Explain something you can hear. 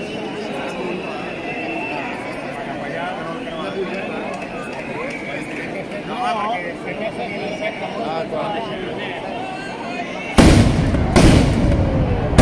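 Fireworks hiss and crackle steadily on the ground outdoors.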